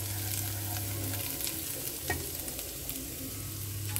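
Chopsticks scrape and stir food in a pan.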